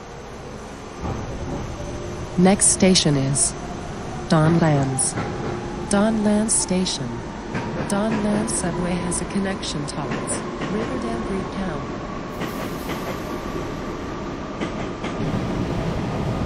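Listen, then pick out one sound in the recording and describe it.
A subway train's electric motor whines, rising steadily in pitch as the train speeds up.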